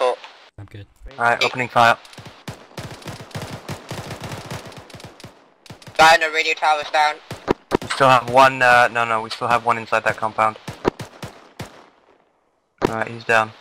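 Rifles fire in rapid, sharp bursts nearby.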